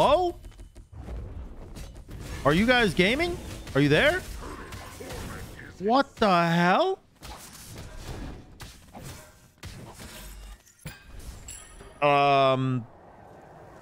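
Fantasy game combat effects whoosh, clash and ring out in bursts.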